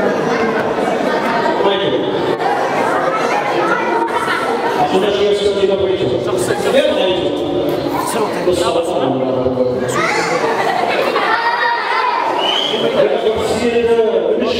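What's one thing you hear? A young man sings into a microphone, heard over loudspeakers in an echoing hall.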